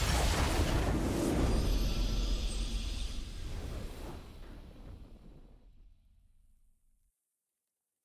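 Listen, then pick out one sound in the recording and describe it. A triumphant fanfare swells and slowly fades out.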